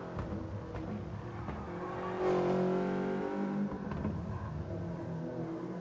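A racing car engine revs high and shifts through gears.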